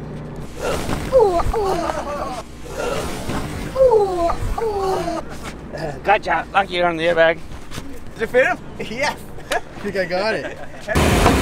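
A man shouts and laughs with animation close by.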